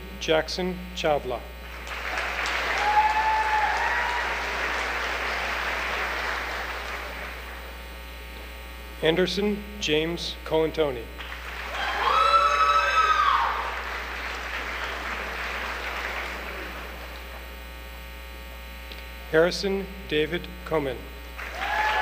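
A man reads out names over a loudspeaker in a large hall.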